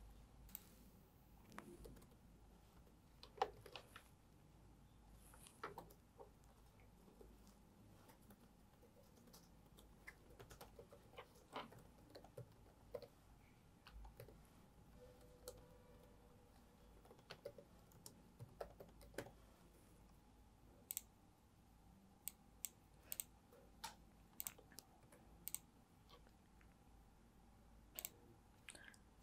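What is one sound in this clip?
Keys click on a laptop keyboard at an uneven pace.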